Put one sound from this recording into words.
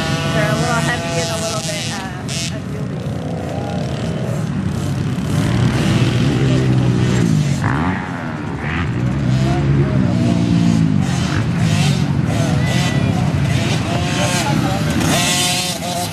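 Several dirt bike engines whine and rev, rising and falling in pitch as the bikes race by outdoors.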